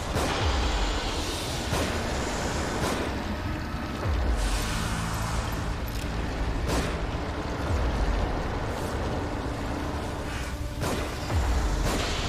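Gunshots bang sharply several times.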